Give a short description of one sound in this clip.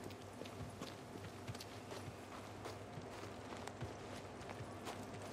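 Footsteps thud quickly on dirt.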